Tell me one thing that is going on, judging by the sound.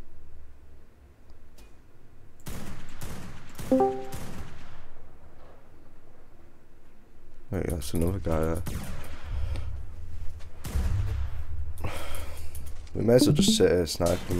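A sniper rifle fires single shots.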